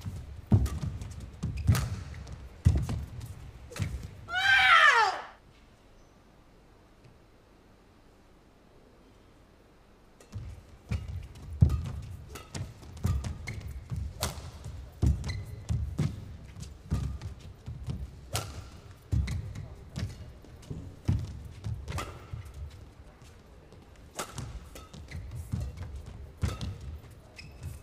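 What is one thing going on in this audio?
A racket strikes a shuttlecock back and forth in sharp, quick smacks.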